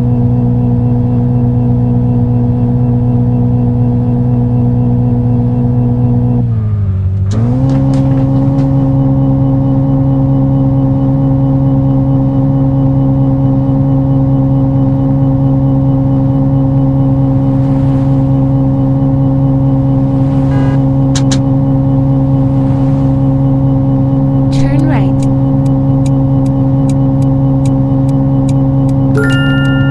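A car engine drones steadily, dipping briefly in pitch as the car slows, then holding steady.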